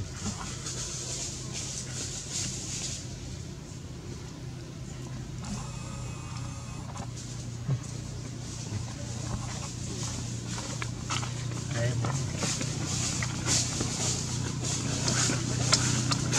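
A monkey crunches food as it eats.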